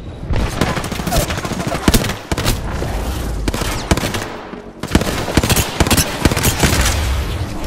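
Rapid gunfire cracks and pops in short bursts.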